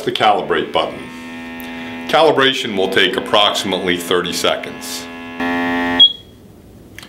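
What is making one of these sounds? A refrigerant analyzer hums.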